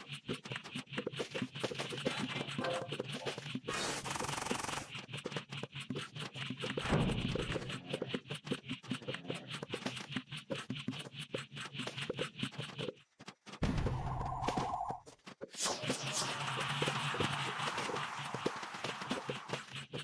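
Cartoonish game music plays throughout.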